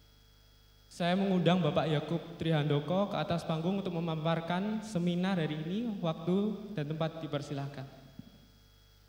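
A young man speaks through a microphone in a large hall.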